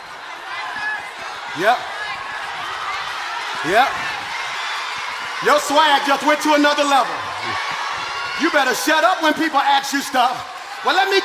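A man sings with passion through a microphone in a large echoing hall.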